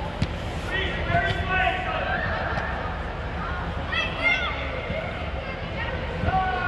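A soccer ball is kicked with dull thuds.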